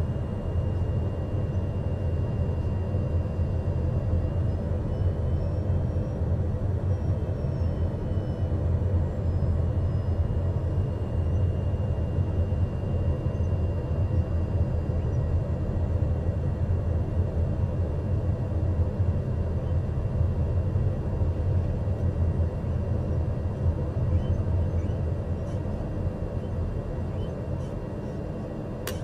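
A small jet engine hums steadily, heard from inside the cockpit as the aircraft taxis.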